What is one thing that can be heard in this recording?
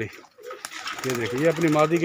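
A pigeon flaps its wings in flight.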